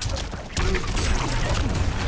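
Flesh tears and squelches wetly.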